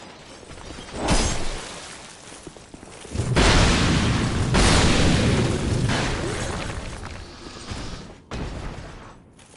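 A heavy sword clashes and strikes in a fight.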